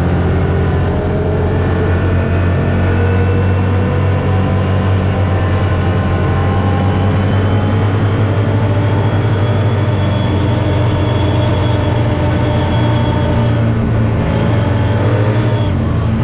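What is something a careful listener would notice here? A gear whines with a gliding pitch.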